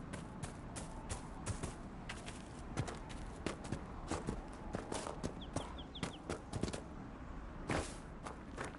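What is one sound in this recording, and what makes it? Footsteps thud quickly on grass and earth.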